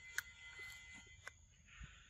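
A monkey chews food close by.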